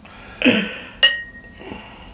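Glasses clink together.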